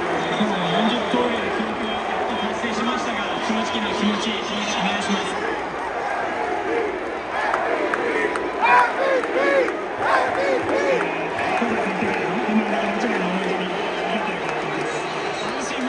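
A man speaks into a microphone over stadium loudspeakers.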